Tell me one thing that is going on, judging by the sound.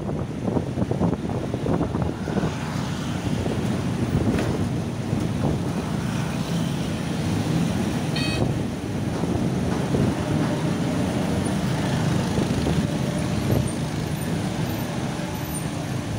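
A vehicle's engine rumbles steadily while driving along a road.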